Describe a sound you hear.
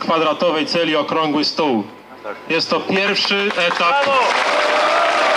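A man speaks with animation into a microphone, heard through loudspeakers outdoors.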